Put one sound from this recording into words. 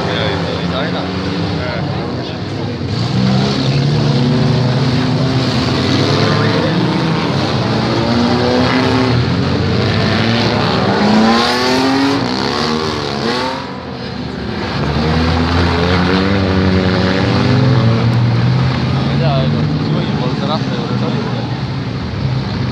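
Car engines roar and rev loudly, rising and falling in pitch.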